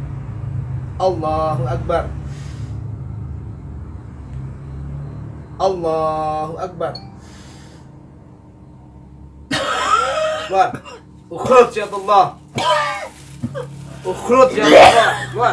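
A man speaks and cries out loudly nearby.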